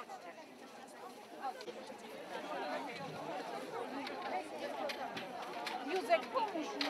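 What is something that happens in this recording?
A crowd of men, women and children chatter outdoors.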